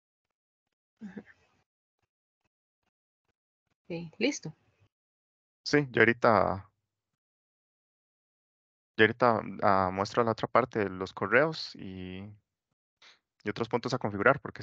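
A young man talks calmly over an online call, in short bursts with pauses.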